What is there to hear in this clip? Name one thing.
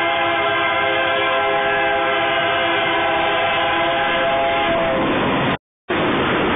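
A freight train's horn blares loudly as the train approaches.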